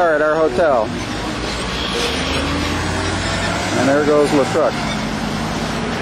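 A bus engine hums as the bus drives past.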